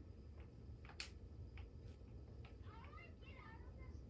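Quick footsteps patter softly in a video game.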